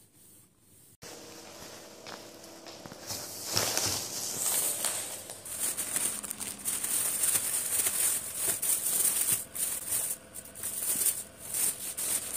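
Plastic shopping bags rustle and crinkle close by.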